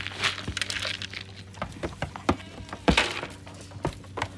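Grain pours and rattles into a plastic feeder.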